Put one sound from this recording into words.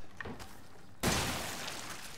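A pistol fires a single loud shot indoors.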